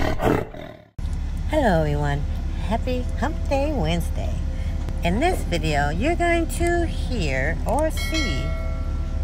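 A young woman speaks brightly and with animation, close to a microphone.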